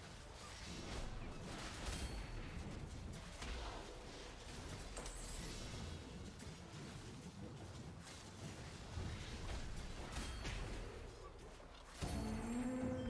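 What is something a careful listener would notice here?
Swords clash and slash in a fast battle.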